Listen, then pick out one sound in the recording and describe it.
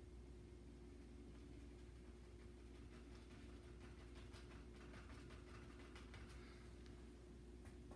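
A paintbrush dabs and scrapes softly on canvas.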